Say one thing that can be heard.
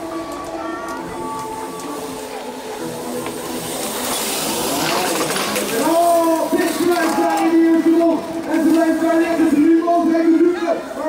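Bicycle tyres roll and rattle over a dirt track.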